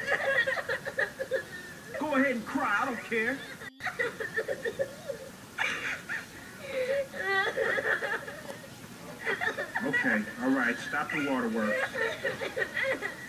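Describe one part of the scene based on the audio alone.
A high, squeaky cartoon voice chatters quickly.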